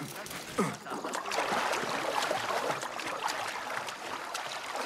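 Water sloshes and swirls as someone swims.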